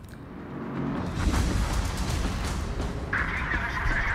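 A big explosion roars and rumbles.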